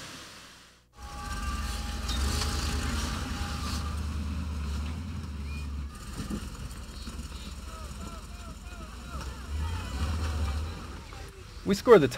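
A vehicle's engine rumbles and revs at low speed.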